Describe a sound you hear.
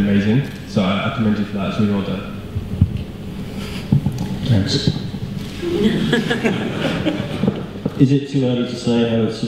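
A man speaks calmly into a microphone, heard through a loudspeaker in a large room.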